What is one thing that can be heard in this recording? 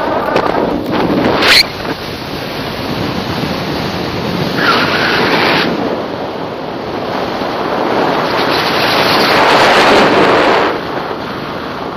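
Wind rushes loudly past a microphone high in the open air.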